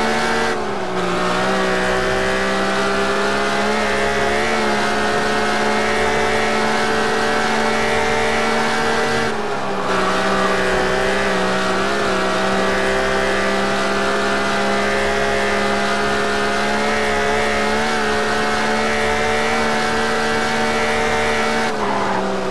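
A car engine roars at high speed, its pitch dropping briefly with each gear shift.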